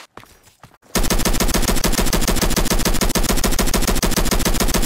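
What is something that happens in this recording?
A rifle fires rapid, loud shots in quick bursts.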